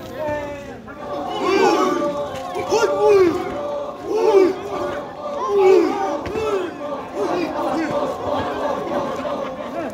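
A group of men chant and shout in rhythm outdoors.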